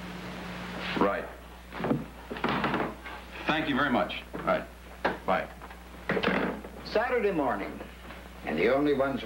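A man talks calmly.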